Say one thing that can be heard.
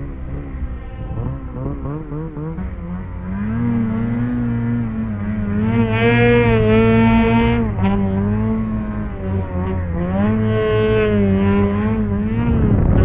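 A snowmobile engine roars close by, its pitch rising and falling as the throttle changes.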